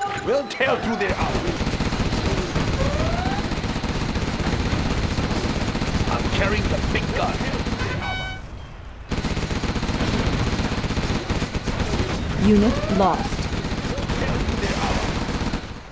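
Gunfire and explosions rumble and crackle.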